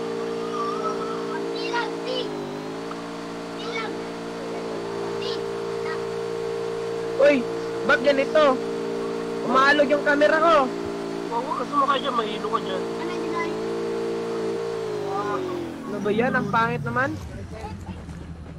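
A vehicle engine drones steadily, then winds down and stops.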